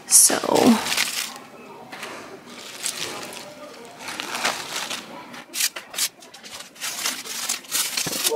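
Artificial leaves rustle softly.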